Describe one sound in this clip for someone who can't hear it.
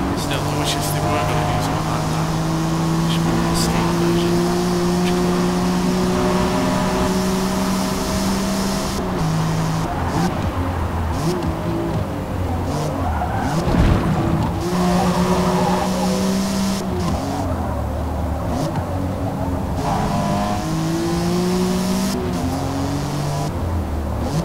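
A car engine roars at high revs and shifts through gears.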